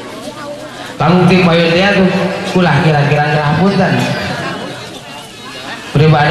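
A middle-aged man sings loudly into a microphone through a loudspeaker, holding long notes.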